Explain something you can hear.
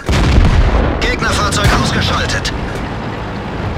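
A heavy gun fires with a loud boom.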